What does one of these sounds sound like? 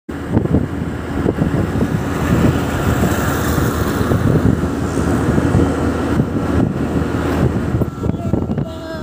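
Wind rumbles and buffets loudly while riding a motorbike.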